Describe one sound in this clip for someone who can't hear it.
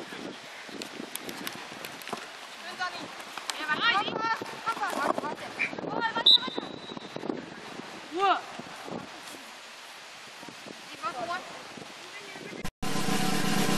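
Young women shout to each other outdoors.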